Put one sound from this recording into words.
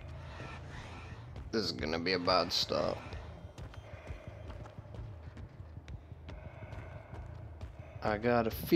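Footsteps thud slowly on a hard floor.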